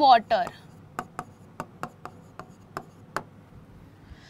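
A pen taps on a board.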